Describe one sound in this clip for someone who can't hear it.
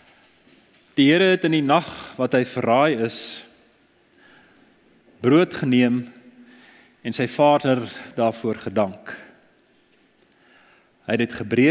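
A man speaks with animation to a room, his voice echoing slightly.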